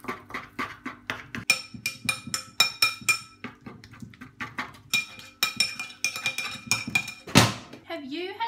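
A fork scrapes and taps rapidly on a wooden cutting board.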